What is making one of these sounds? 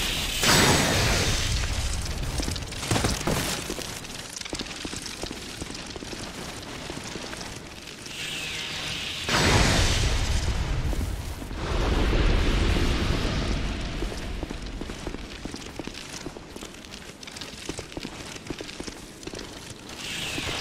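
Armoured footsteps clatter on stone.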